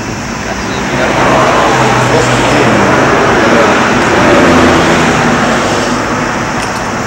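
A young man speaks close by, outdoors.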